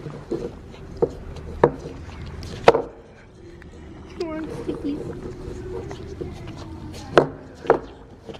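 A horse licks and slurps from a plastic tub.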